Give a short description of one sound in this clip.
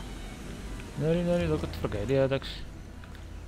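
A man speaks briefly, close to a microphone.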